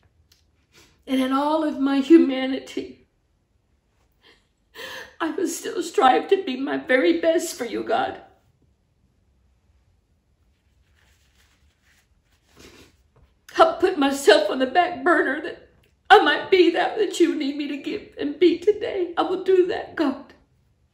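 A woman speaks tearfully and haltingly, close by.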